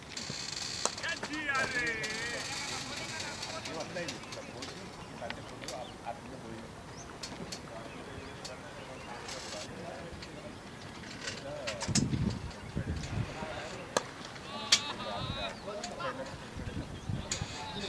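Men call out across an open field.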